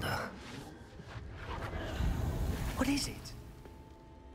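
A magical whooshing sound swells and fades.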